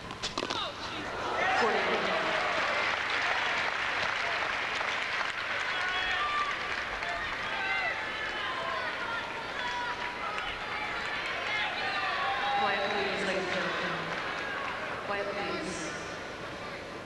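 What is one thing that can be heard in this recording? A large crowd applauds and cheers in a big echoing hall, then slowly quiets down.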